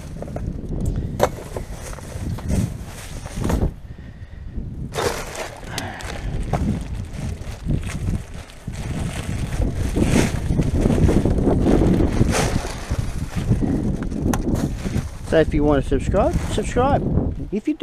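Plastic bags and wrappers rustle and crinkle as gloved hands dig through rubbish.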